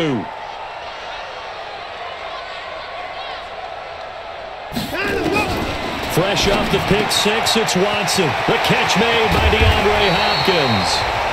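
A stadium crowd roars and cheers, swelling louder.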